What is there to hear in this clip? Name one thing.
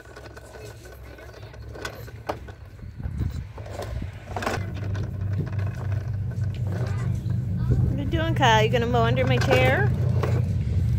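A toy lawn mower rattles and pops as a young child pushes it over paving.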